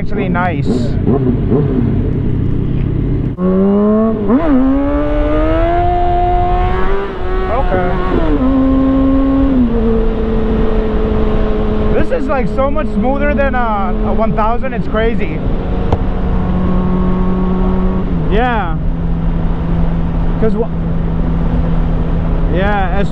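A motorcycle engine idles and then roars as it accelerates through the gears.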